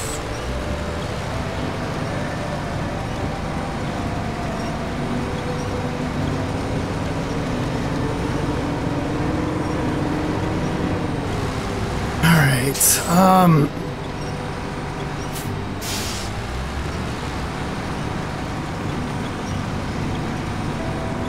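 A truck engine rumbles steadily at low speed.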